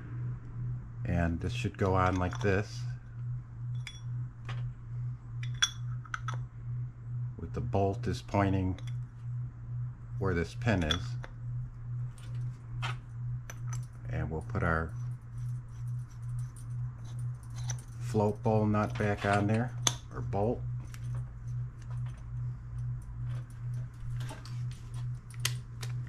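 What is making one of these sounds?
Small metal parts click and scrape together.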